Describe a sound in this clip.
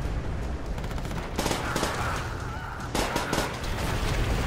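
Gunshots crack in a game.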